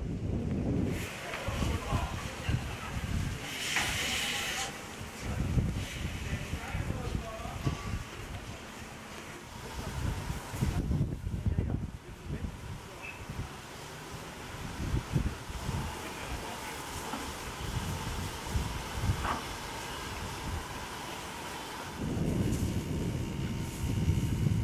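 Steam locomotives rumble and chuff.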